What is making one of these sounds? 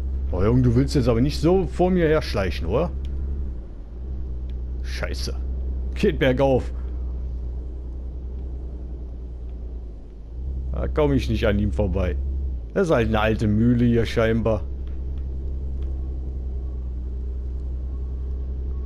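A heavy truck's diesel engine drones at cruising speed.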